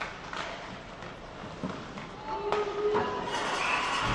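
Skates scrape across ice in a large echoing arena.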